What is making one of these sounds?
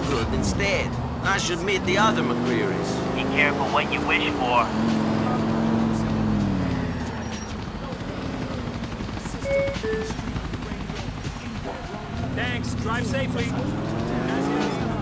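A car engine revs, its pitch rising and falling as it accelerates and slows.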